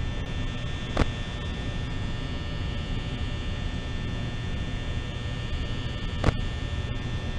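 A button clicks sharply.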